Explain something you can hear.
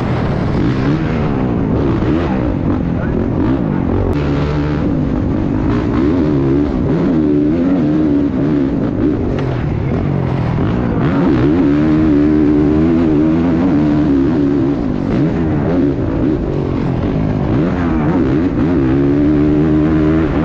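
A motorcycle engine revs hard up and down close by.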